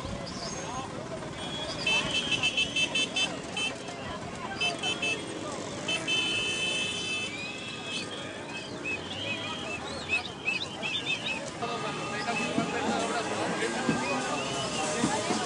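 Bicycle wheels roll and tick along on pavement.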